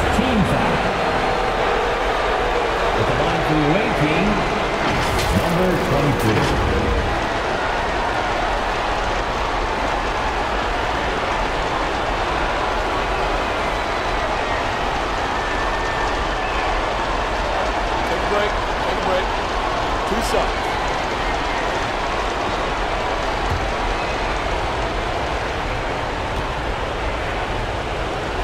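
A large crowd murmurs and cheers steadily in a big echoing arena.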